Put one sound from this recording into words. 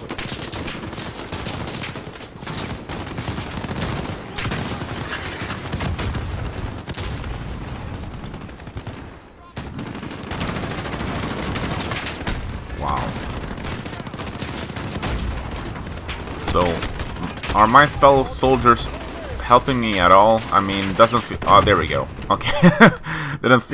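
Rifles fire in rapid bursts of gunshots.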